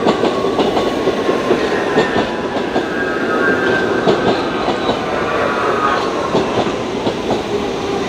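Brakes squeal as a train slows.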